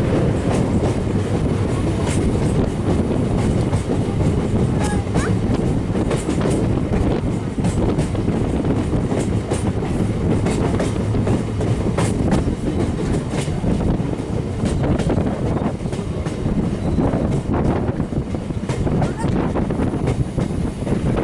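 Wind rushes loudly past an open train door.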